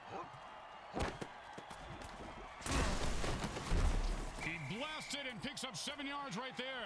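Armoured players crash into each other with heavy thuds.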